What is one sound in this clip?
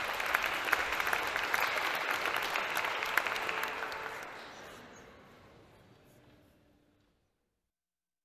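An audience applauds in a large hall, then the applause fades away.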